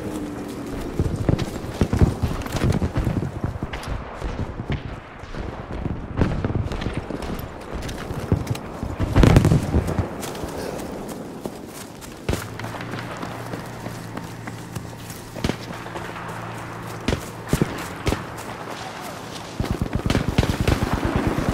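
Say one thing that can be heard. Gunfire crackles in the distance.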